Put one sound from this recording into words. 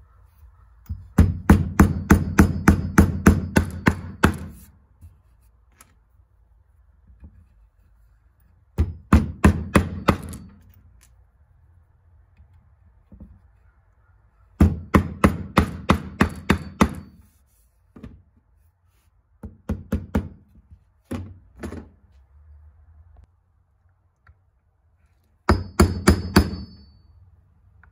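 A hammer taps quickly on a nail in wood, in bursts of blows.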